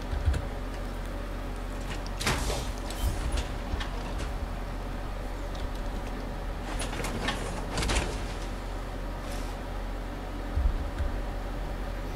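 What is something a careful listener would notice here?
Heavy metal footsteps clank on a hard floor.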